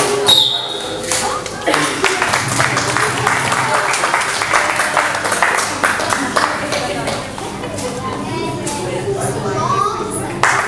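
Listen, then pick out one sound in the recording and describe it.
A group of people clap their hands in rhythm.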